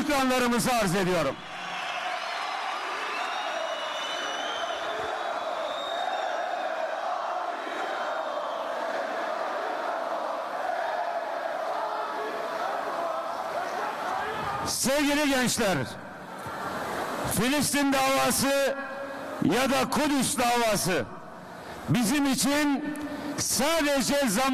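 A middle-aged man speaks calmly into a microphone, heard through loudspeakers in a large echoing hall.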